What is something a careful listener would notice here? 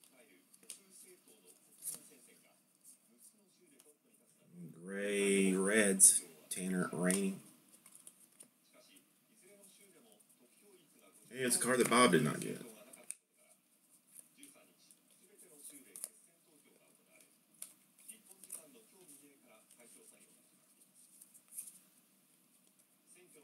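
Trading cards rustle and slide against each other as they are flipped through by hand.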